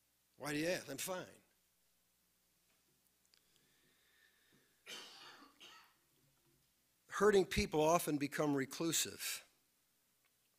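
A middle-aged man speaks with emphasis through a microphone, pausing between phrases.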